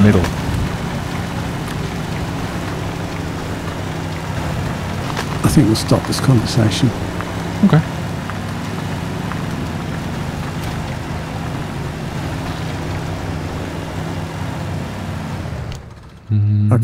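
A truck engine rumbles steadily at low speed.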